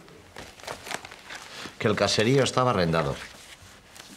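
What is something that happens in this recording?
Paper rustles as pages are handled.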